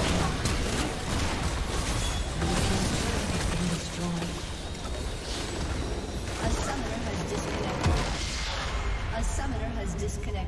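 Blows and explosions thud repeatedly.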